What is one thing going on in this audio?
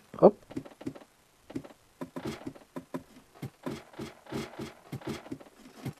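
Footsteps tap on wooden ladder rungs during a climb.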